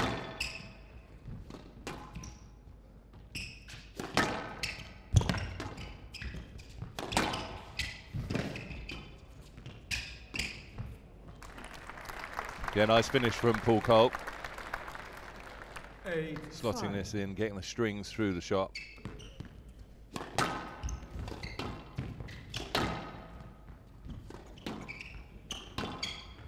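A squash ball smacks hard against the walls, echoing in a large hall.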